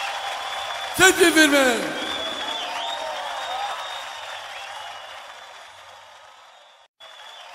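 A large crowd cheers and whistles, then slowly fades.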